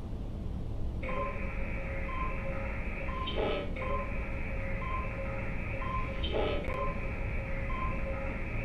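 A computer terminal beeps softly at a regular pace.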